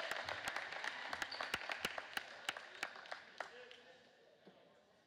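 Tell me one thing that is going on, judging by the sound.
A crowd cheers and claps in a large echoing gym, then quiets down.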